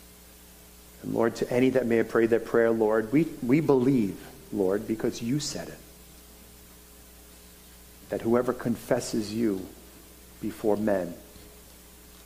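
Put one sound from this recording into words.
A middle-aged man speaks calmly and slowly through a microphone, with pauses.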